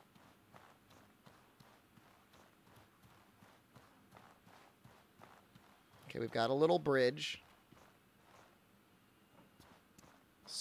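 Footsteps fall steadily on the ground.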